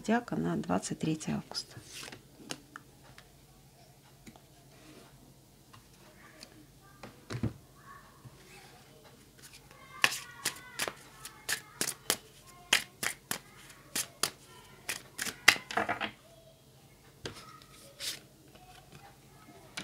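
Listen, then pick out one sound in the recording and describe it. Playing cards rustle and slap as a deck is shuffled by hand.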